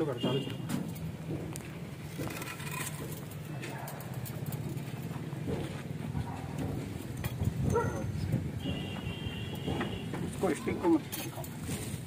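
Bricks knock and scrape against each other as they are set down.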